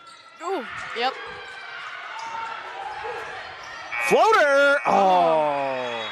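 A crowd cheers in a large echoing gym.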